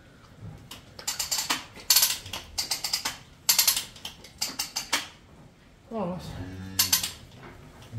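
A metal gate rattles and clanks as a cow pushes against it.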